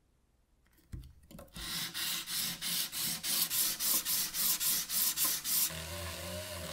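A metal plate scrapes back and forth on sandpaper in quick, rhythmic strokes.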